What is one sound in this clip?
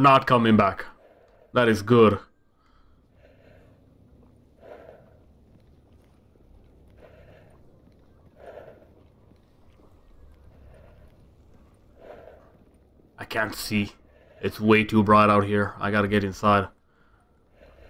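Footsteps crunch softly on snow.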